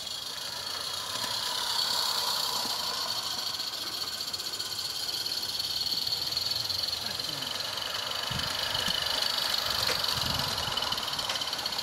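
Train wheels click and rumble over rail joints.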